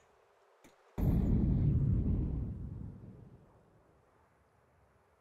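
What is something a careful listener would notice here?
A smoke grenade hisses loudly as it spews smoke.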